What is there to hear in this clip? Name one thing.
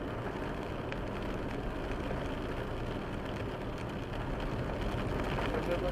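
A car passes by in the other direction.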